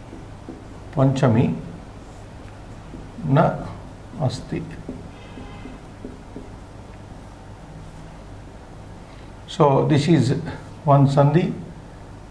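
A man speaks in short, slow phrases, as if teaching.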